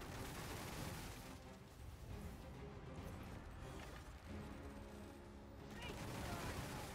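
Magic spells crackle and hum.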